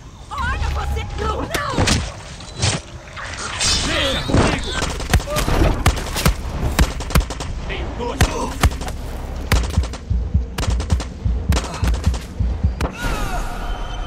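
Heavy blows thud and crack in quick succession.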